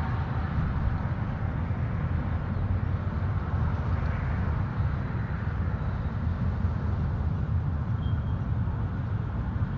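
Wind rumbles steadily against the microphone outdoors.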